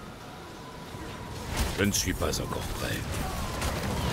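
Video game combat effects clash and burst.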